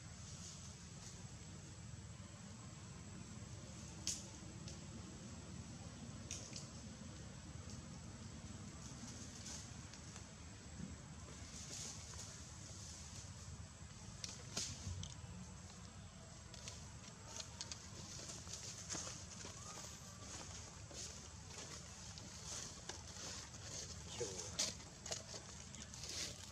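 Dry leaves rustle and crackle as a baby monkey scrambles about.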